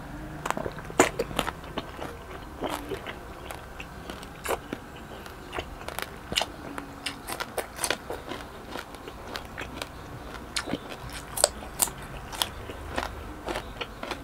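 A man chews food noisily, close to a microphone.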